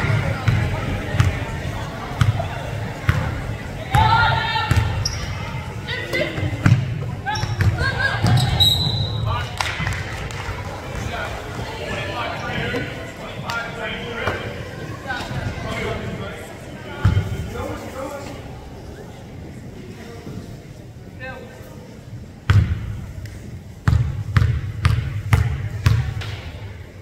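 A basketball bounces on a hard floor with echoing thumps.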